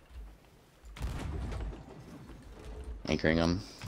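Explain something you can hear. A cannon fires with a loud boom.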